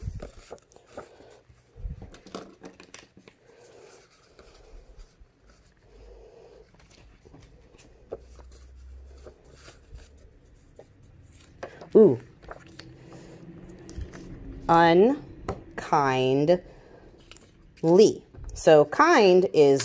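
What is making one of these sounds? Paper cards rustle and tap softly on a wooden table.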